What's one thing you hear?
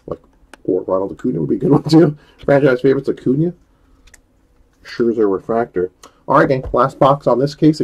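Trading cards rustle softly as they are shuffled by hand.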